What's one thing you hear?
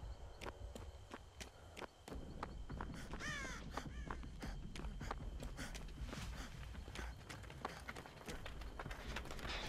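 Quick footsteps run through tall grass.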